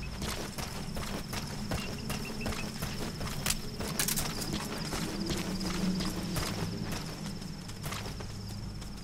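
Footsteps crunch quickly over gravel.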